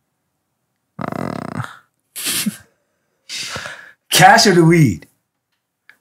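A man laughs loudly near a microphone.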